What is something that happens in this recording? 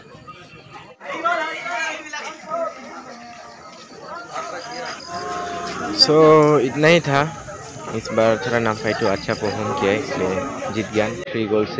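Young men talk and shout excitedly close by.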